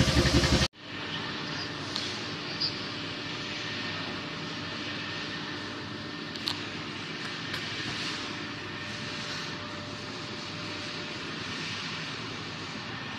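A heating machine hums steadily.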